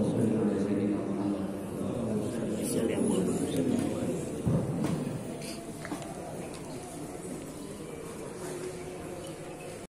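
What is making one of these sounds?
A crowd of men murmur and talk.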